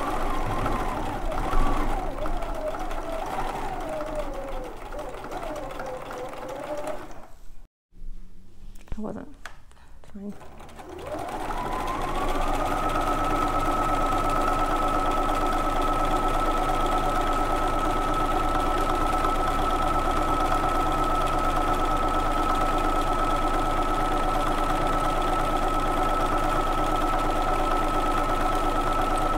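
A sewing machine stitches with a fast, steady whirr.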